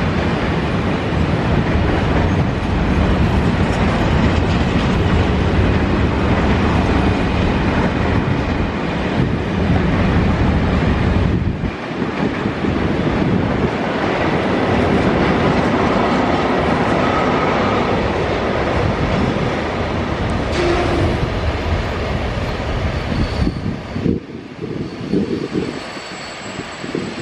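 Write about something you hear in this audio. A long freight train rumbles steadily past, wheels clattering on the rails.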